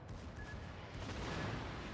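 Naval guns fire with a deep, muffled boom.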